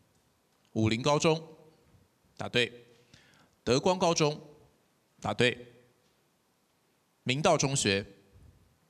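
A man speaks loudly through a microphone in short, lively bursts.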